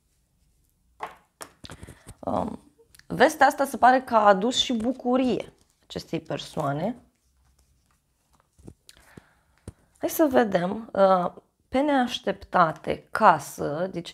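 A young woman speaks calmly and closely into a microphone.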